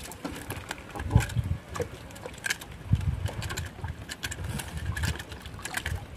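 A fish flaps and thumps against the wooden boat.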